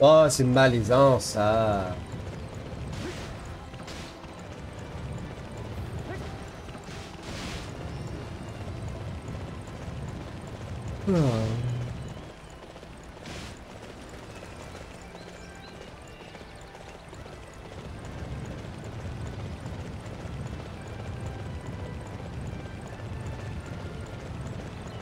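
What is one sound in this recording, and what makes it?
Horse hooves gallop steadily on a dirt path.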